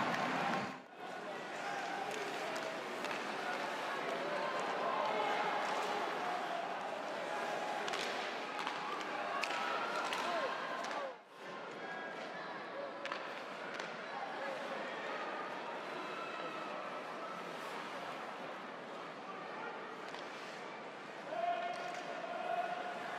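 Skates scrape on ice.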